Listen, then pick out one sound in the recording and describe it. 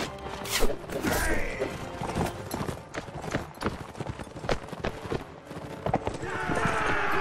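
Horses gallop with thudding hooves.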